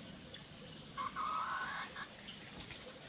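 A hen clucks close by.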